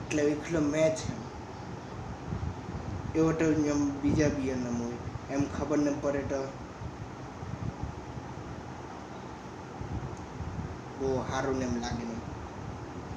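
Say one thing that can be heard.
A young man talks close by, calmly, in short bursts.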